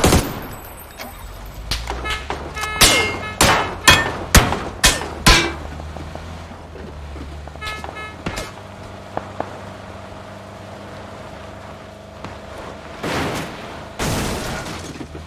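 A car engine hums as a car drives over rough ground.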